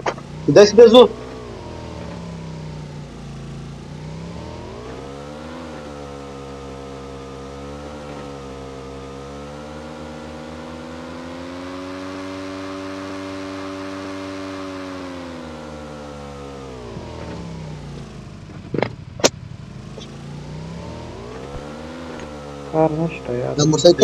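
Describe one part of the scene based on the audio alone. A motorcycle engine drones steadily, its pitch slowly rising and falling.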